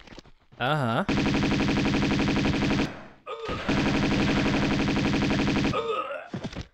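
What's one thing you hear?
A gun fires in a fast, loud burst.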